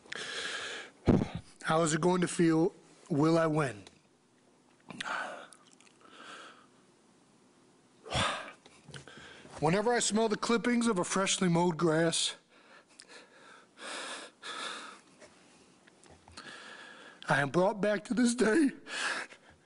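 A man speaks haltingly and emotionally into a microphone, with long pauses.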